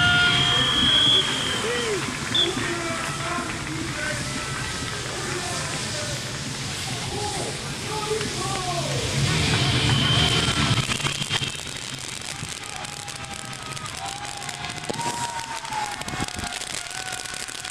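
Firework fountains hiss and crackle as they spray sparks outdoors.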